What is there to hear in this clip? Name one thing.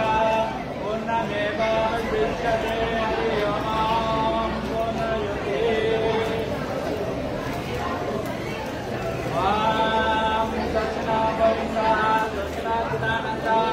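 Men chant a prayer in a steady, melodic voice close by.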